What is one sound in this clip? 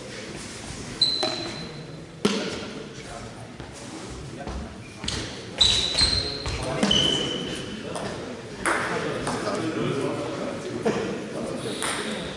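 A table tennis ball clicks against bats and bounces on a table in an echoing hall.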